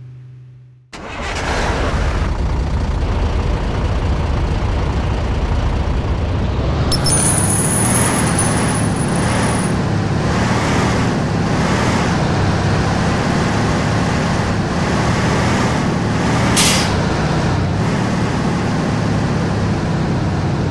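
A truck engine roars and rumbles as the truck drives off.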